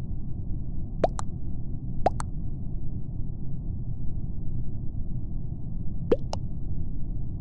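A short double electronic blip sounds each time a vote is cast.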